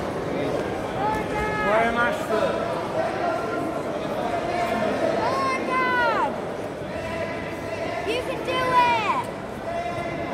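Spectators, mostly men, shout loudly with excitement.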